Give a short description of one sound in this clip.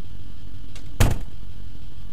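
A door swings shut with a thud.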